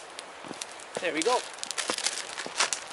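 A plastic wrapper crinkles in someone's hands.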